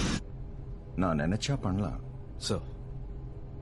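An older man replies calmly and close by.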